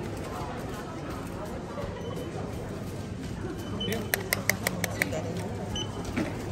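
A crowd of shoppers murmurs and talks indoors.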